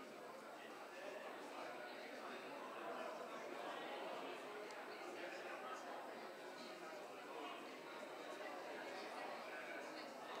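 Many men and women murmur and chat in a large echoing hall.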